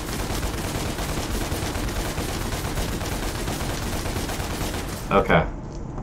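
Rapid gunfire rattles and clatters.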